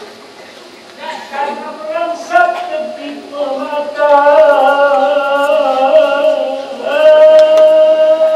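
A man sings loudly through a loudspeaker in a room with echo.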